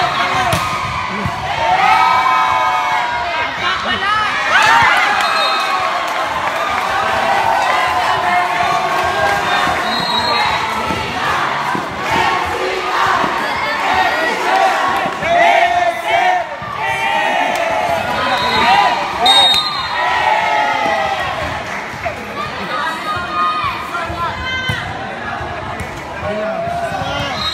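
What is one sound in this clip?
A crowd of young people chatters and cheers loudly.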